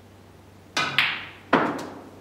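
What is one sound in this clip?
Snooker balls knock together and against the cushion.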